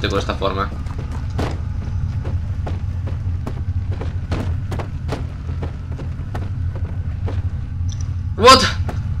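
A wooden barrel knocks and thuds against a hard floor.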